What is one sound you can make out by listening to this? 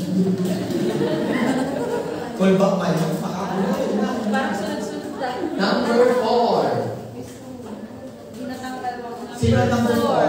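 An elderly man speaks into a microphone with animation in a room with some echo.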